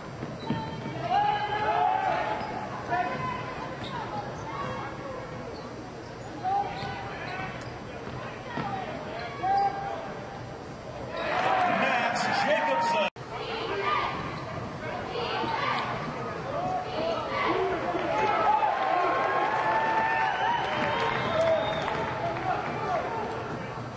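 A crowd in a large echoing arena murmurs and cheers.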